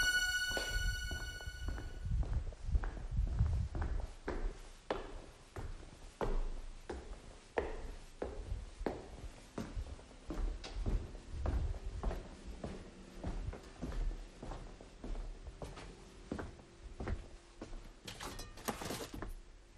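A man's footsteps thud steadily on stairs.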